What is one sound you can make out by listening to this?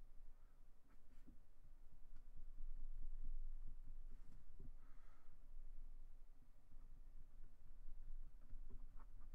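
A marker pen scratches and squeaks on paper.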